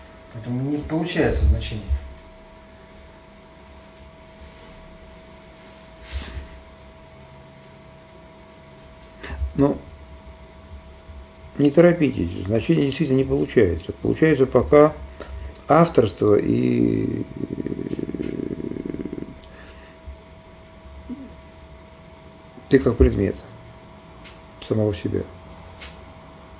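An older man speaks calmly nearby, in short bursts with pauses.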